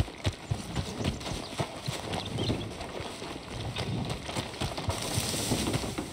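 Footsteps crunch on a dirt path outdoors.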